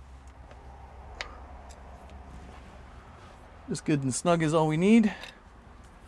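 A wrench clicks against metal.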